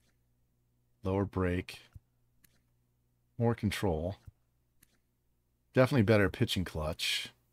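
A man talks into a close microphone with animation, in short bursts.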